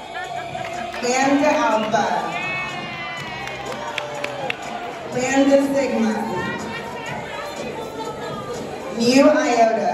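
Women sing and chant together close by.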